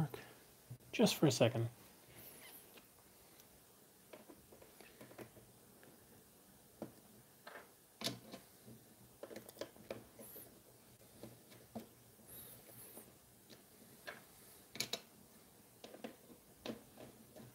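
Plastic knobs tap lightly as they are pushed into place.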